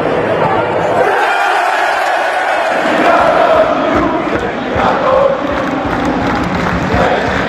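A large crowd roars and cheers in a huge open stadium.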